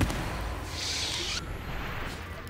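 A lightsaber hums and crackles.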